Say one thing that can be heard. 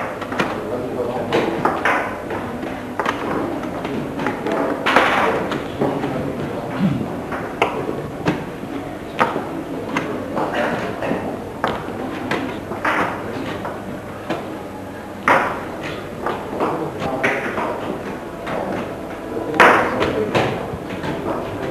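A crowd of adults murmurs quietly in a large room.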